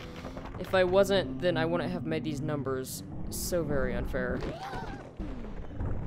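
Heavy boulders crash onto the ground.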